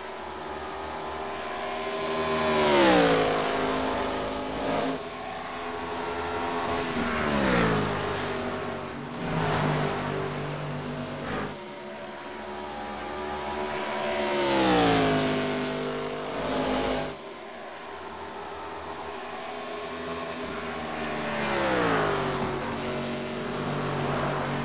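Race car engines roar past again and again, dropping in pitch as each one goes by.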